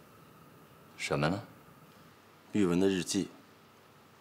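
A second man speaks in a low, calm voice.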